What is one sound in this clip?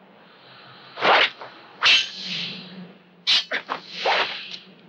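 Swords clash sharply several times.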